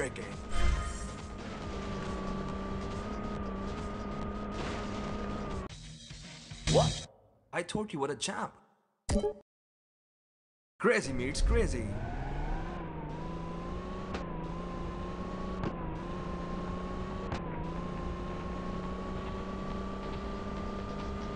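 A car engine hums steadily, its pitch rising as it speeds up.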